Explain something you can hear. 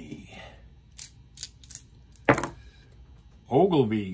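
Dice clatter into a plastic tray.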